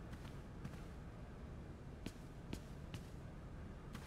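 Footsteps knock on a hard floor in a large echoing hall.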